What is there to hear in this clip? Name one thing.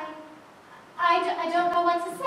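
A woman speaks with animation in a large echoing hall.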